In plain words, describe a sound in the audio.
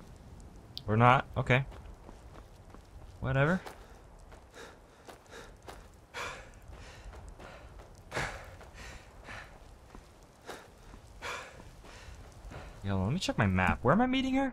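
Footsteps thud on stone and wooden planks.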